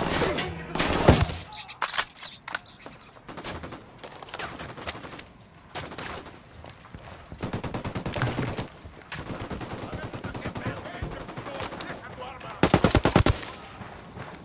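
A rifle fires single shots and a rapid burst close by.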